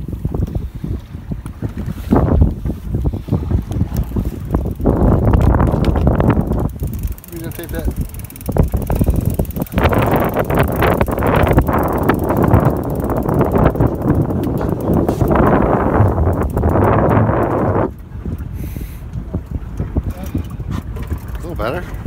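Waves slap against a boat's hull.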